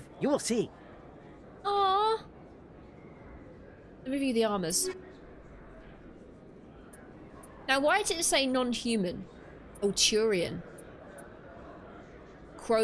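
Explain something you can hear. A young woman speaks with animation, close to a microphone, in short bursts.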